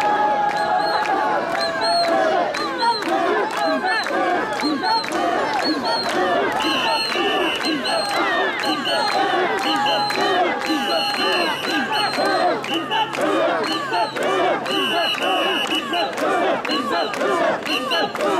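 A large crowd of men and women chants in rhythm outdoors.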